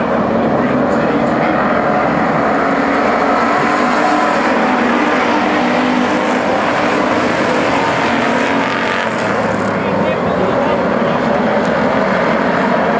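Several race car engines roar loudly.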